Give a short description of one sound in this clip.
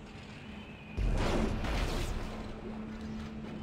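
A loud blast whooshes close by.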